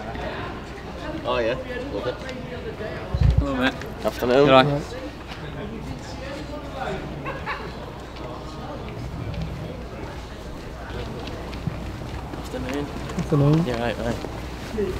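Young men talk and laugh casually nearby, outdoors.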